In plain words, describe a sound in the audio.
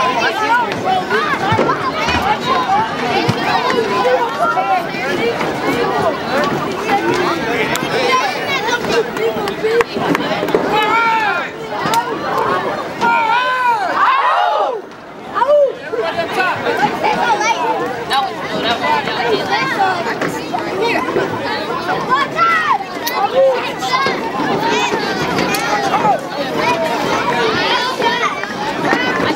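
A crowd of people chatters and calls out nearby, outdoors.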